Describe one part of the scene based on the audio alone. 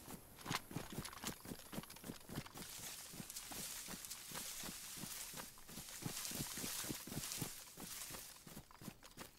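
Footsteps tread steadily over grass and soft ground.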